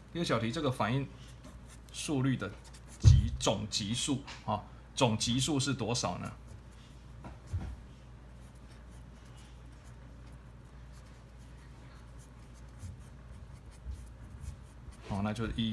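A marker pen scratches and squeaks on paper.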